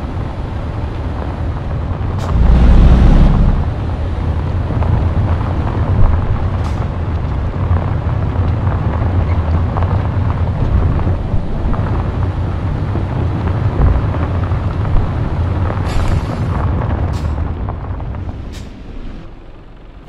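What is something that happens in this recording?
A diesel truck engine rumbles, pulling at low speed.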